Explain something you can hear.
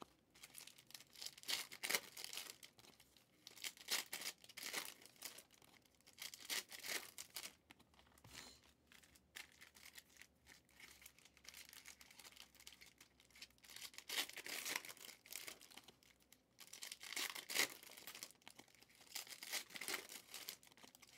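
Plastic wrappers crinkle and rustle as they are handled.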